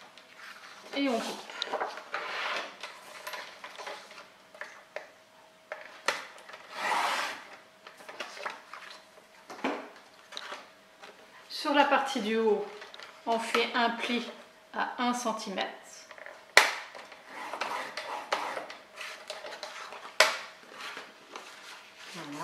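Stiff paper rustles and slides as hands handle it.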